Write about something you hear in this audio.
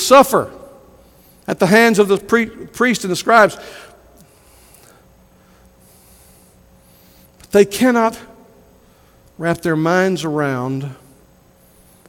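An older man preaches with animation through a microphone, pausing between phrases.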